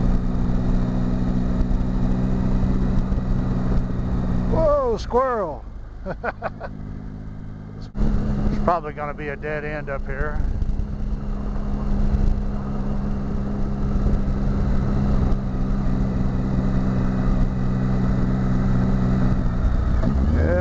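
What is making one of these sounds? A Triumph touring motorcycle engine hums at a steady cruise.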